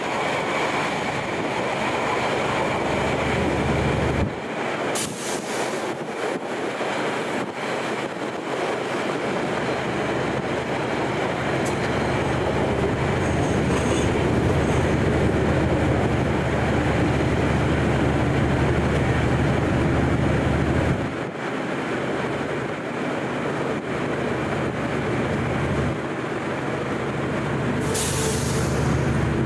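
A passenger train rumbles slowly past on the tracks.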